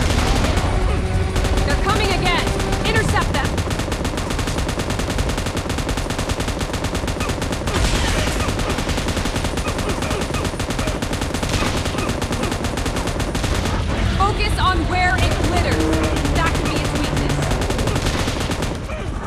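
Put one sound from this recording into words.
Heavy gunfire rattles rapidly.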